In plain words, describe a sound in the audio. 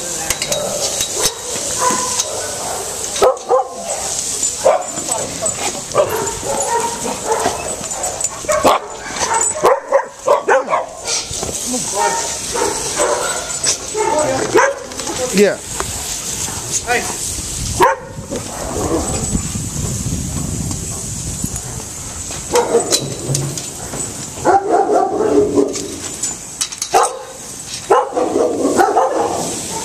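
Several dogs bark and yelp close by.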